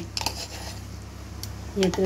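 Ginger rasps against a grater.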